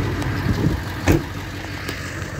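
A pickup truck door slams shut.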